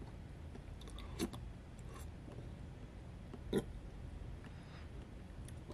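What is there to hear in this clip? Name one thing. A man chews and smacks his lips close by.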